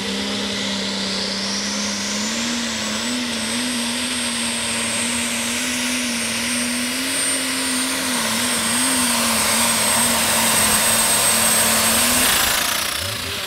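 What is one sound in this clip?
A tractor engine roars loudly at full power, with a high whine.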